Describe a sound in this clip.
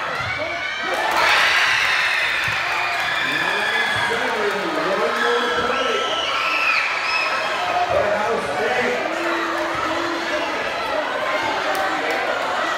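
Girls shout to each other during a volleyball game.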